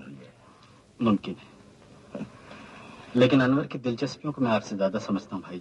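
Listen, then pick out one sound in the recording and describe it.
A younger man speaks calmly.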